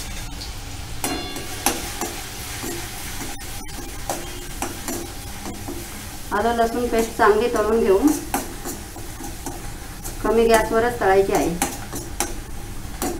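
A metal ladle scrapes and clinks against a metal pan.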